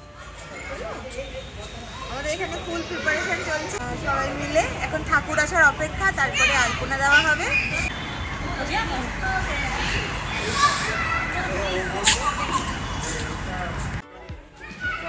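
A young woman talks cheerfully and close by.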